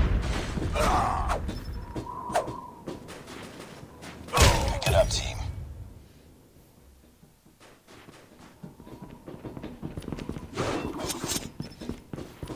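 Footsteps clatter quickly on hard metal ground.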